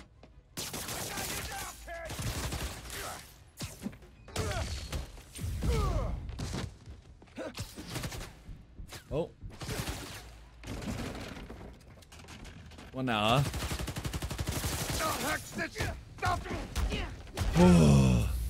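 Punches and thuds land in a fight.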